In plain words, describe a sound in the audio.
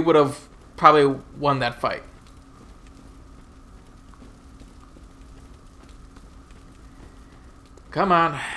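Footsteps run quickly over stone and gravel.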